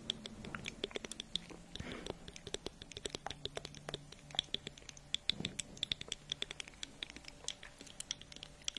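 A plastic toy plane clicks and taps close to a microphone.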